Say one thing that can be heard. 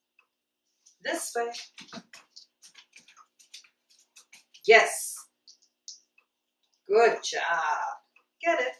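A woman speaks warmly and encouragingly to a dog, close by indoors.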